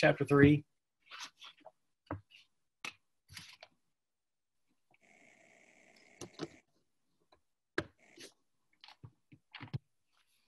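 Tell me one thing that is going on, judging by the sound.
A young man speaks calmly and haltingly over an online call.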